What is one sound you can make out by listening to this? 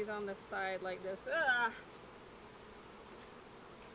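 A bee smoker puffs softly.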